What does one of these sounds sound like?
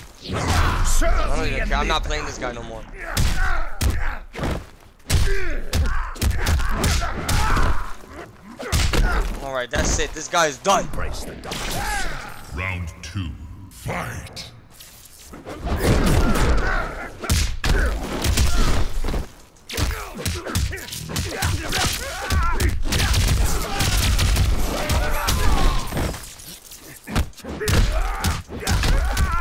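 Punches and kicks thud and crack in a fighting game.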